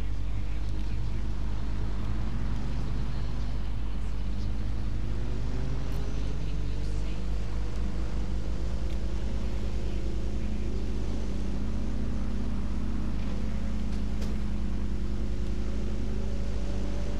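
A bus engine hums and rises in pitch as it drives along.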